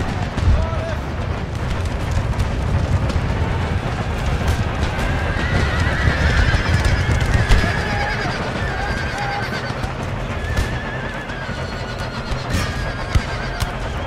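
Horses gallop in a heavy rumbling charge.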